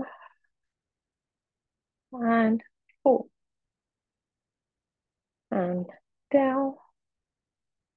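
A woman speaks calmly through a microphone, in short phrases.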